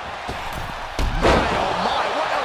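A heavy thud sounds as a wrestler lands on another.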